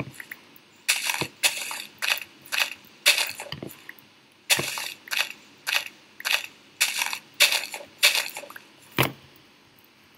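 A shovel digs into dirt with quick, repeated crunches.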